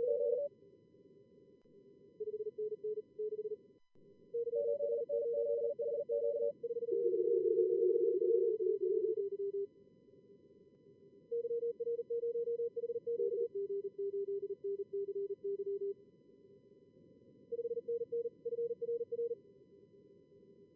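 Morse code beeps in quick bursts of high tones.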